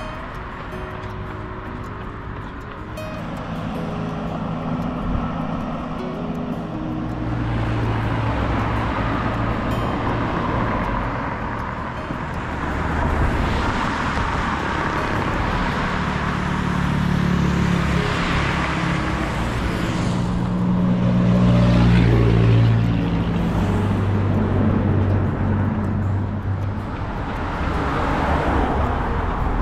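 A vehicle engine hums and drones steadily while moving along a road.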